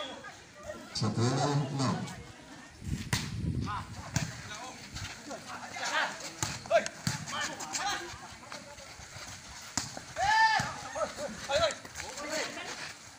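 Several men shout to each other outdoors.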